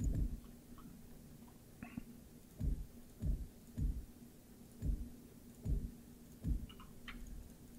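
Blocks snap into place with deep, soft thuds.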